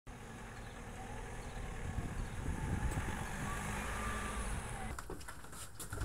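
A van engine rumbles as the van rolls slowly past.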